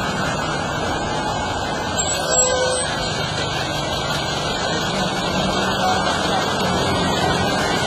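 A bus engine rumbles steadily as the bus rolls slowly over a rough road.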